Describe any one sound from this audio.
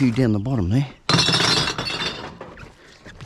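Glass bottles clink together.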